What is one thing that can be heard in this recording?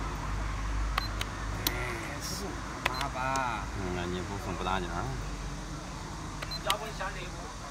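Wooden game pieces click and clack on a board.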